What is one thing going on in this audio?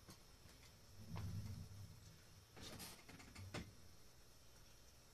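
A small guitar bumps and knocks as it is picked up.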